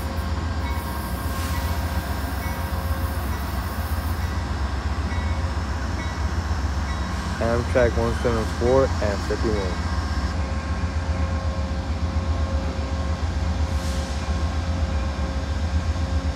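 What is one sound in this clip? A diesel locomotive idles with a low, steady rumble.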